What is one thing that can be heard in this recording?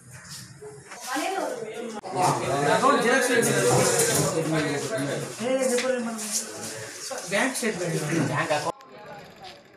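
Several men talk at once, close by, with animation.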